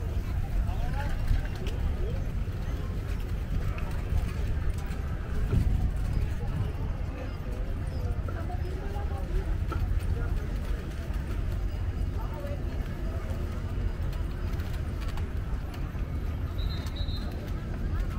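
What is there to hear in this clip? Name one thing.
Footsteps patter on paving stones.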